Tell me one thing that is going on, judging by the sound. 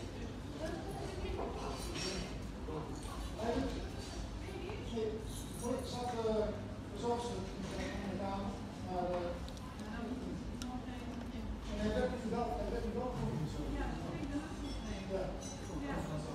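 An elderly woman talks with animation close to a microphone.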